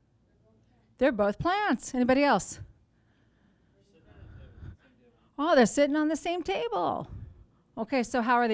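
A woman speaks clearly and with animation into a microphone.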